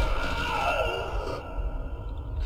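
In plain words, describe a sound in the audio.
A man screams in anguish.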